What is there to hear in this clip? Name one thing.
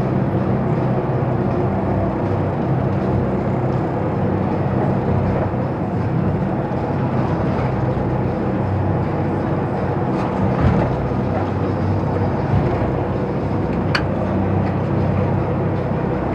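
A boat's engine drones steadily and loudly.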